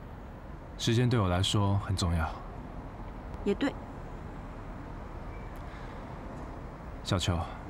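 A young man speaks softly up close.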